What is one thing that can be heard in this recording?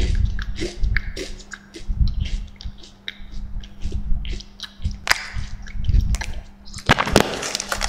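A man chews food close by.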